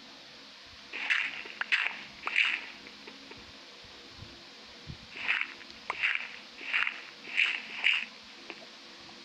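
Stone blocks crunch as they are dug out.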